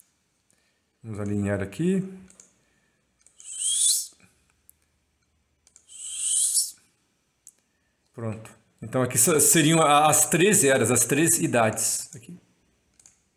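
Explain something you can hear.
A man speaks calmly, heard through a microphone on an online call.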